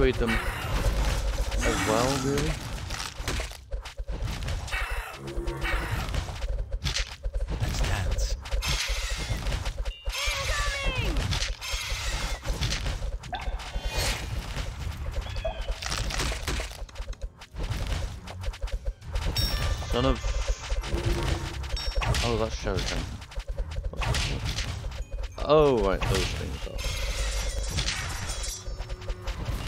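Game battle sounds of clashing weapons and blasts play throughout.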